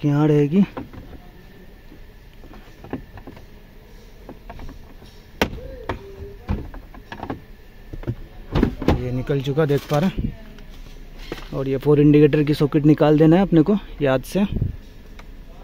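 Hard plastic panels click and knock as they are handled and pried loose.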